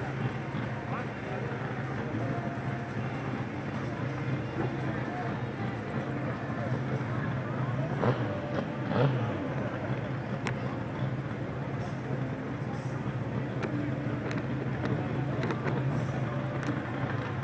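A crowd chatters at a distance outdoors.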